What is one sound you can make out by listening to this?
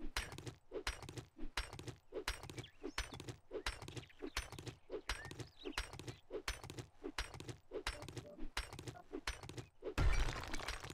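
A pickaxe strikes rock again and again in a quick, steady rhythm.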